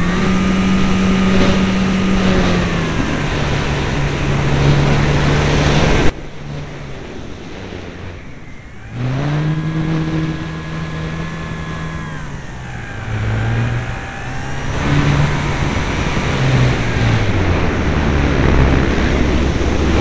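A small motor whines, its pitch rising and falling as it speeds up and slows down.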